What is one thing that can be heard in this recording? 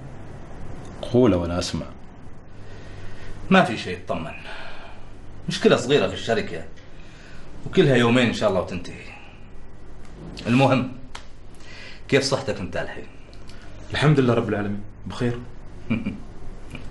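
A middle-aged man speaks intensely in short, forceful bursts close by.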